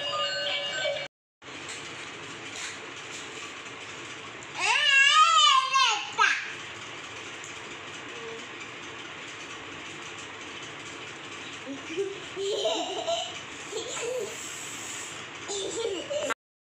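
A toy car plays tinny electronic music.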